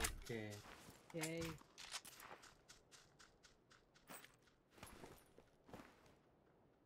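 Gunshots crack and bullets thud into the ground nearby.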